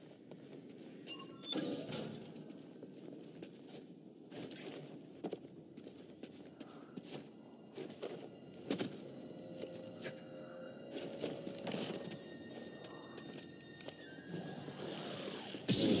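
Footsteps run across hard rock.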